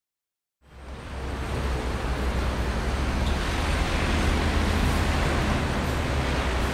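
City traffic rumbles steadily along a busy street.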